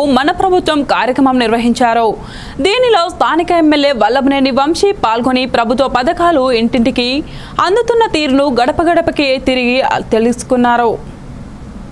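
A young woman reads out the news calmly through a microphone.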